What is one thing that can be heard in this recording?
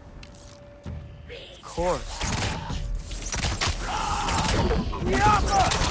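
Weapons strike and thud in a game fight.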